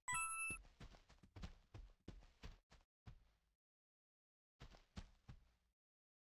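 Footsteps patter softly on sand.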